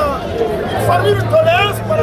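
A man sings loudly.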